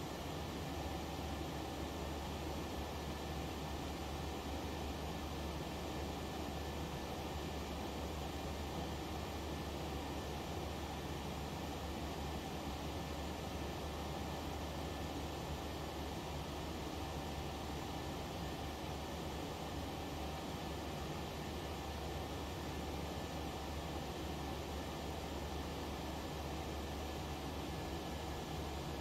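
Jet engines drone steadily in a cockpit.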